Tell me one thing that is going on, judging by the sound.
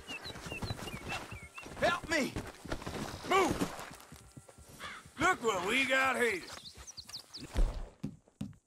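A man shouts and groans in distress.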